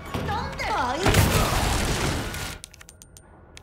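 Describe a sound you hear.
A loud explosion bursts with a roar of fire.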